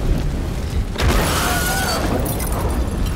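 A blast bursts with a loud whoosh.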